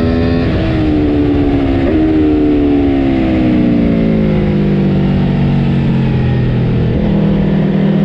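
A motorcycle engine blips sharply during gear changes.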